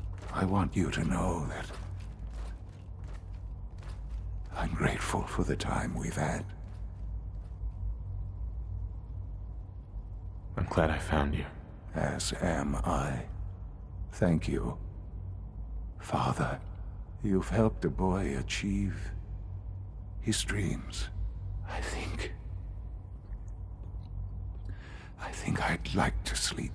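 An elderly man speaks weakly and slowly, close by.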